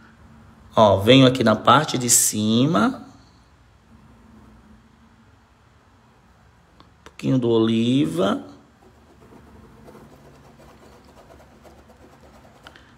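A paintbrush dabs and taps softly on a surface.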